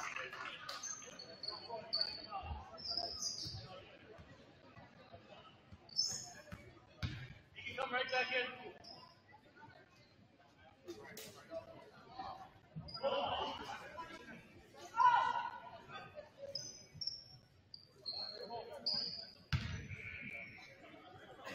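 Spectators in the stands talk and call out, echoing in a large gym.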